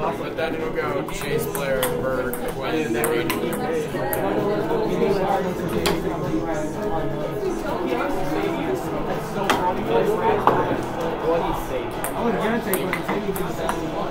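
Young men talk and shout with animation in an echoing room.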